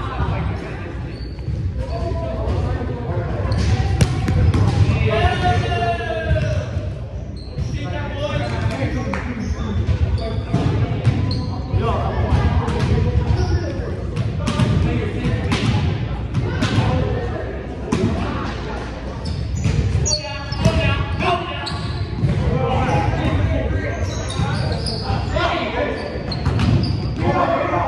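Young men call out and talk to each other in a large echoing hall.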